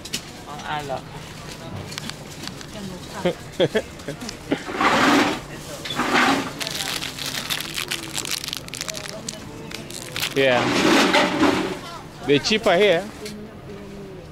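Market vendors call out and chatter in the background outdoors.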